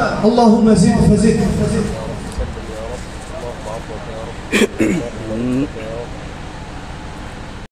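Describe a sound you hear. A young man chants in a melodic voice into a microphone, heard through loudspeakers with echo.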